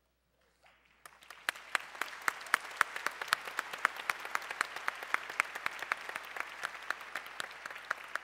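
A crowd applauds in a large hall.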